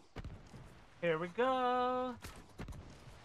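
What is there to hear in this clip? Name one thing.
A man calls out loudly into a close microphone.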